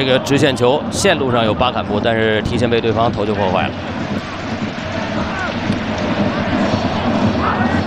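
A stadium crowd murmurs and cheers in a large open space.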